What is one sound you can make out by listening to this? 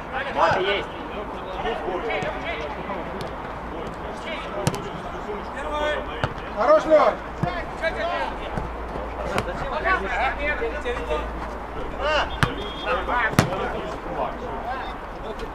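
Players shout to each other across an outdoor pitch.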